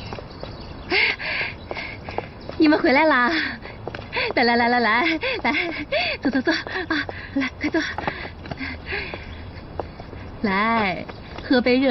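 A woman calls out cheerfully and speaks with animation nearby.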